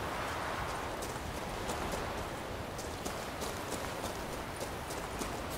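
Footsteps crunch over loose rocks and gravel.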